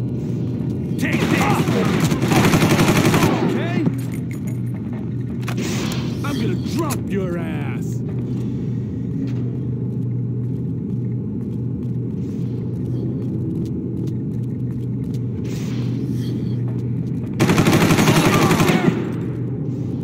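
A rifle fires loud rapid bursts.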